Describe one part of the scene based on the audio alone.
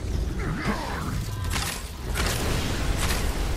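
A heavy weapon strikes with loud impacts.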